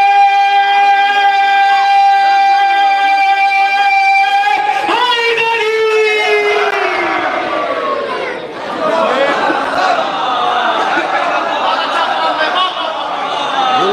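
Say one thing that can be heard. A young man sings a long, drawn-out note through a loudspeaker, then recites with passion.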